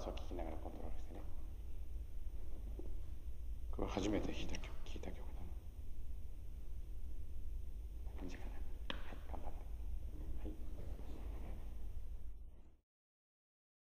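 A man speaks calmly nearby in a large room.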